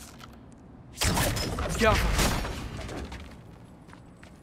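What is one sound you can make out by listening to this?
A crystal shatters with a loud ringing burst.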